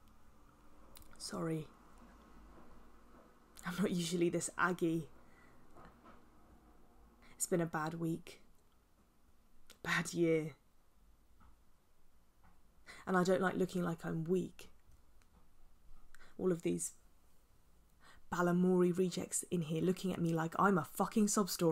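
A young woman speaks calmly into a nearby microphone, in short phrases with pauses.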